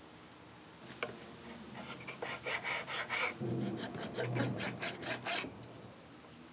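A sanding block rasps quickly back and forth along a wooden edge.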